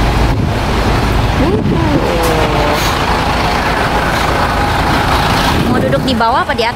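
A bus engine hums nearby.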